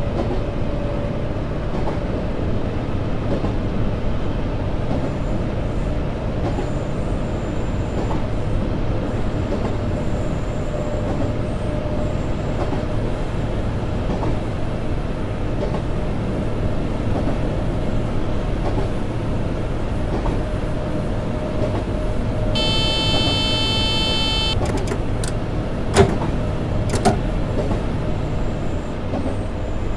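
A train rumbles steadily along the tracks from inside the cab.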